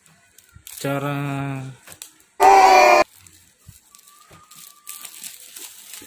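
Plastic wrap crinkles as it is peeled off.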